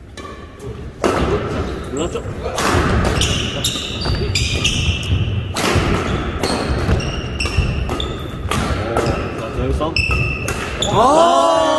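A ball is kicked back and forth with sharp thumps in an echoing hall.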